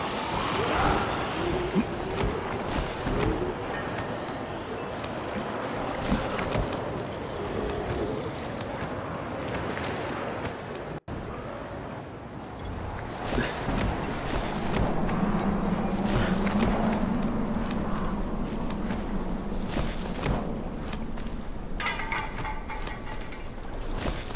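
Hands grab and scrape against metal and concrete.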